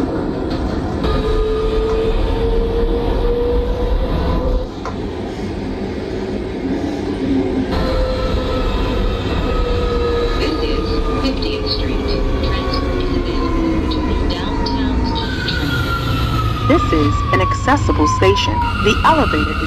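A train's motors whine, falling in pitch as the train slows.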